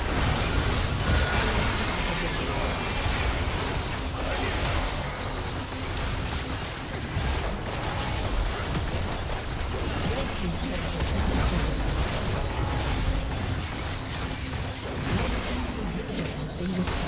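Magic blasts and weapon strikes crackle and boom in a busy fight.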